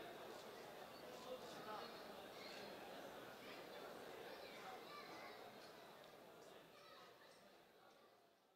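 A crowd of men chatters and murmurs in a large room.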